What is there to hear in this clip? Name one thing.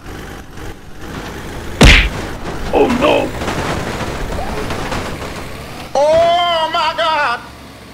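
A truck engine rumbles as the truck drives closer.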